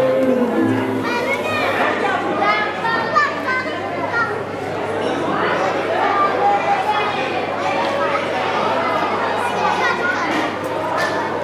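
An electric guitar plays music through loudspeakers.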